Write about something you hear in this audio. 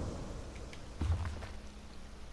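A book opens with a soft thump.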